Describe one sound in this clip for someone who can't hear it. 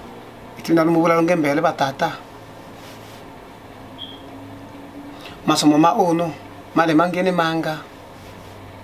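A man speaks calmly and close by, in short bursts.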